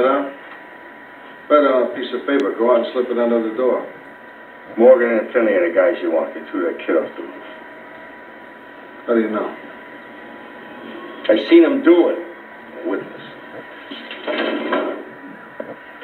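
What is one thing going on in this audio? An older man answers gruffly, close by.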